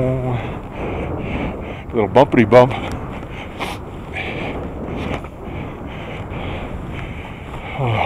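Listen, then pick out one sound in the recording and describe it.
Skis hiss and swish through soft snow in steady rhythmic bursts.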